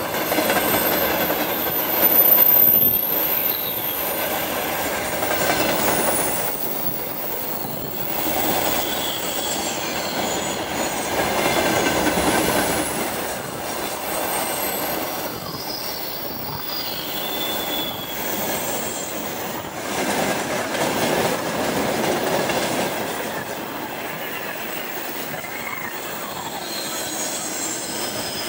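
Metal squeals faintly from the passing wagons.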